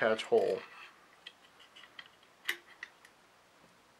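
A small metal part clicks into place.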